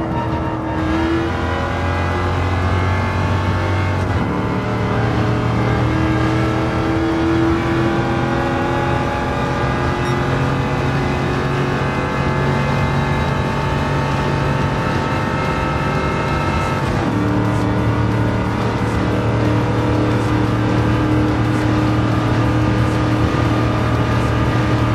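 A race car engine roars loudly, rising in pitch and dropping back with each gear change.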